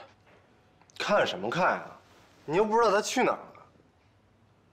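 A young man answers calmly, close by.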